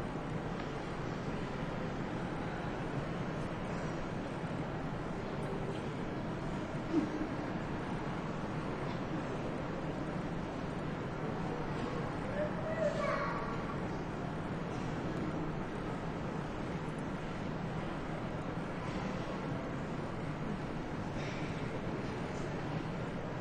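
A standing crowd murmurs quietly in a large hall.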